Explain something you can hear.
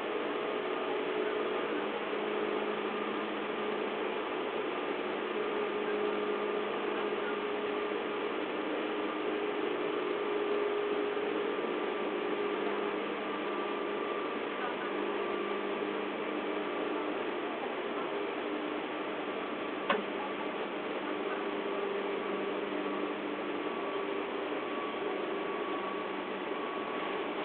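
A train's wheels clack over rail joints.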